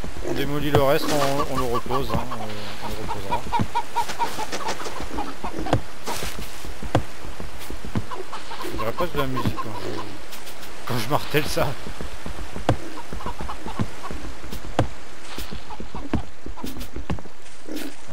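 Wood breaks with short, sharp knocks.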